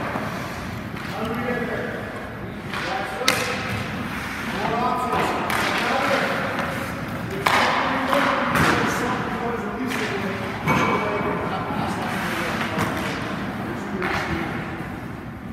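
A man speaks with animation in an echoing ice rink.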